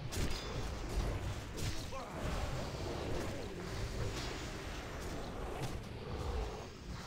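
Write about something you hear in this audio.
Weapons and spells clash and whoosh in a busy battle.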